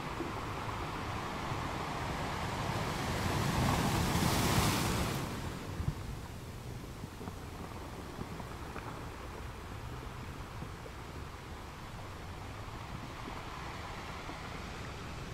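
Sea water washes and swirls among rocks.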